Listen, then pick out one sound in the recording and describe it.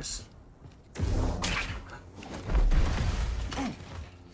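Heavy thuds sound as a game character jumps and lands.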